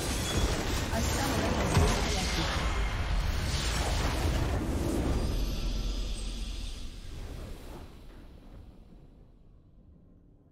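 A loud magical explosion booms and then fades away.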